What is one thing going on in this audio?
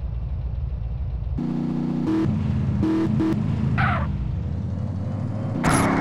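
Tyres squeal as a car drifts.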